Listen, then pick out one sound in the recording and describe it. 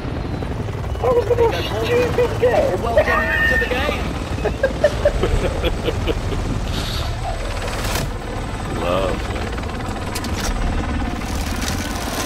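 A helicopter's rotor thumps steadily close overhead.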